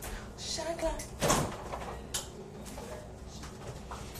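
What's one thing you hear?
A refrigerator door opens.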